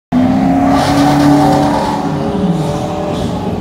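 A sports car engine roars loudly as the car drives past.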